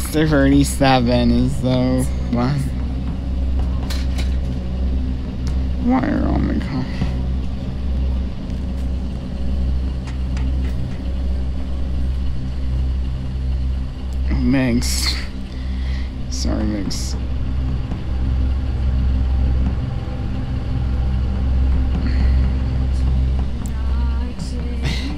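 Light footsteps patter steadily on a metal floor.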